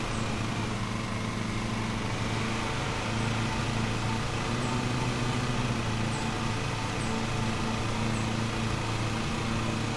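A small mower engine hums steadily.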